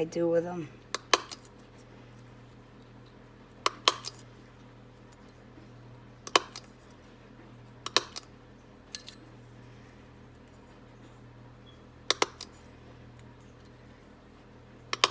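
A hand punch clicks sharply as it cuts through card.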